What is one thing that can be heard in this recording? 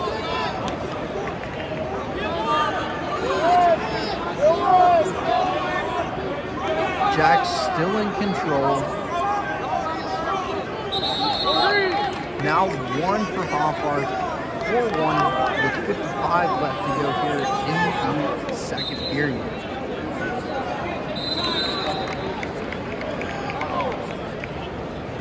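A large crowd murmurs and shouts in a big echoing arena.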